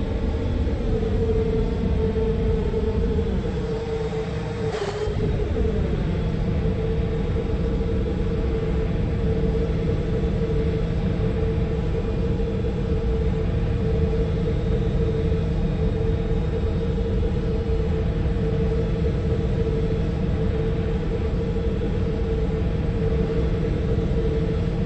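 A jet airliner's engines whine and rumble steadily.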